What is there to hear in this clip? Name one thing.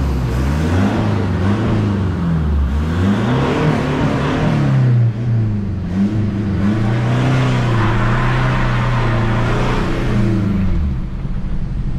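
A car engine revs up and down as the car drives and changes gear.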